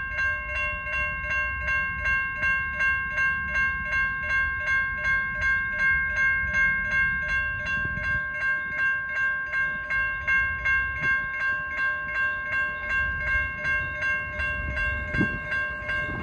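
A railroad crossing bell clangs in rapid, steady strokes.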